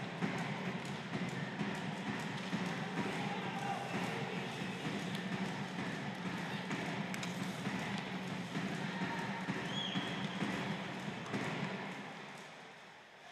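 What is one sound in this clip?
A large crowd roars and chants in an echoing arena.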